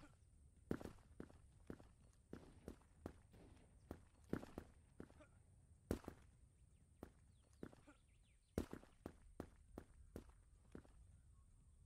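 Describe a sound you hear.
Footsteps thud steadily on the ground.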